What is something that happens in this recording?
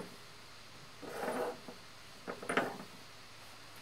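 Fabric rustles as a shawl is wrapped around a man.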